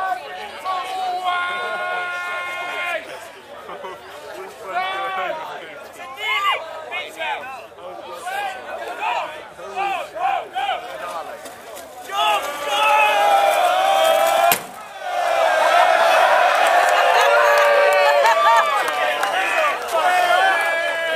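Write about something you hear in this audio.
A crowd of young men and women shouts and cheers nearby.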